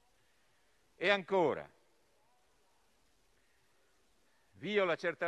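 A middle-aged man speaks formally into a microphone in a large hall.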